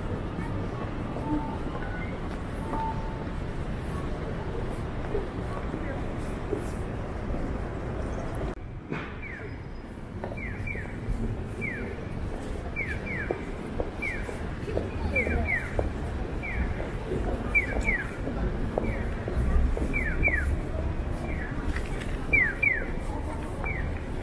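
Footsteps patter on pavement.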